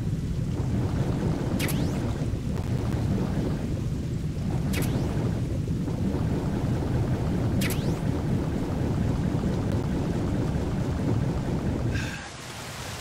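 Water rumbles in a deep, muffled roar, heard from underwater.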